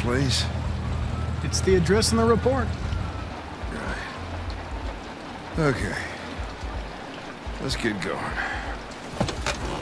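An older man speaks gruffly, close by.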